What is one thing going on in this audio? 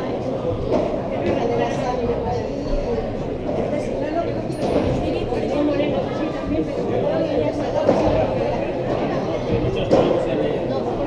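Padel rackets strike a ball with sharp pops in an echoing hall.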